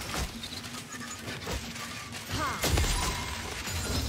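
Magic blasts and sword hits clash in a fast battle.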